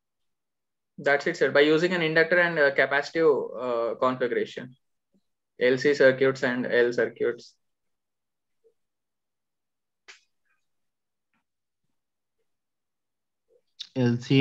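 A young man speaks calmly through a call connection.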